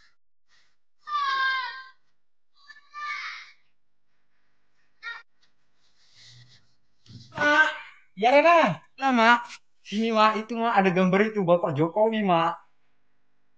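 A middle-aged woman speaks close by in short, lively phrases.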